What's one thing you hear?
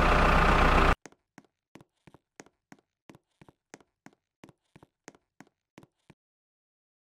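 Quick footsteps tap on hard ground.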